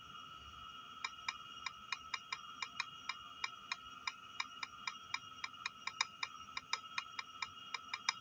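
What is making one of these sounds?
Phone keyboard taps click quickly, one after another.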